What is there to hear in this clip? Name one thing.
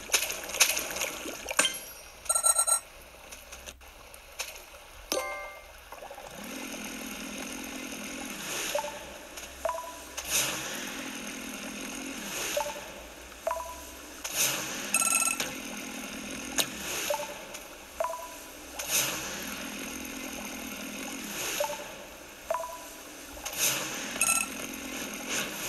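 Short electronic chimes and jingles play from a tablet speaker.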